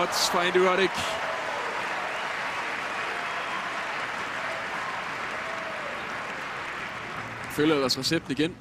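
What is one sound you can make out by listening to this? A crowd applauds in a large arena.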